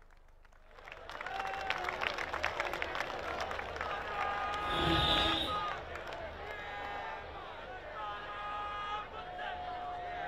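A large crowd cheers outdoors.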